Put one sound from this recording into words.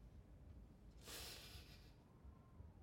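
A young woman sniffles close by.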